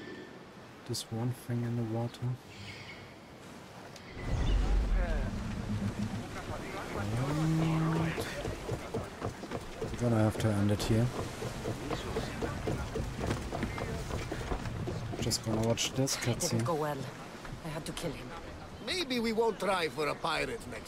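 A man talks casually into a microphone, close by.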